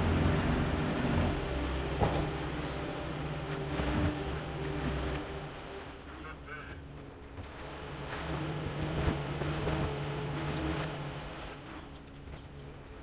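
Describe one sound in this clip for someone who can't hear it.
A skid steer loader's diesel engine rumbles and revs nearby.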